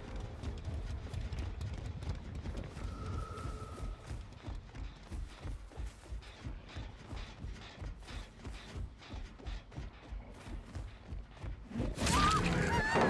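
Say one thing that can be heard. Heavy footsteps thud steadily on soft ground.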